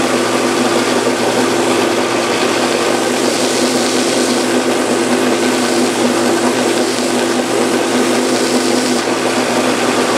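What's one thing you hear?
A block of wood grinds against a sanding belt.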